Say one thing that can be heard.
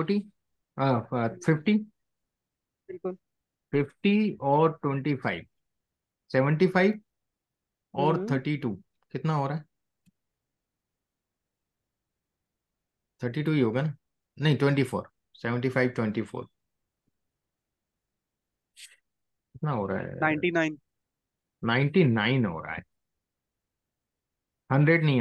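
A man speaks calmly into a microphone, with pauses, as on an online call.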